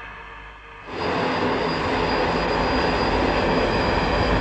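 A heavy vehicle rumbles noisily across rough ground.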